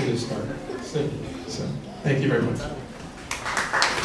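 A man speaks to an audience in a large hall.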